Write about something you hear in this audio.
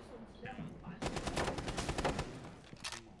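A rifle fires a rapid burst of gunshots.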